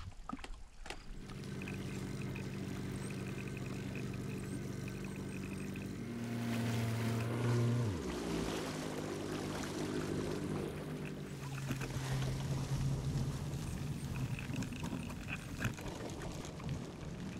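A boat motor hums steadily, then drops in pitch and keeps running.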